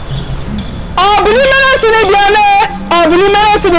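A woman shouts loudly and forcefully nearby.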